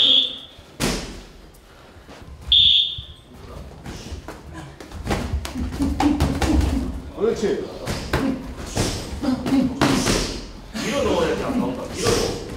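Sneakers shuffle and squeak on a floor.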